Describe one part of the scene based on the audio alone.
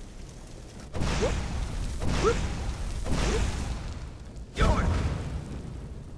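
Flames burst and roar loudly in an echoing stone space.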